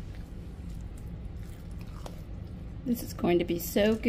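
A fork stirs thick, wet batter in a bowl with soft squelching scrapes.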